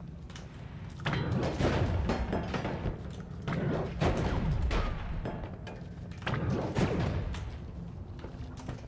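Magic blasts and hits crackle in bursts from a video game.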